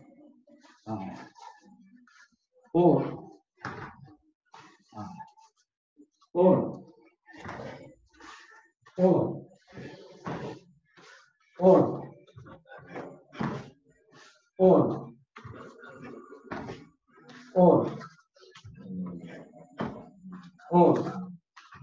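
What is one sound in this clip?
A man calls out loud, sharp counts at steady intervals.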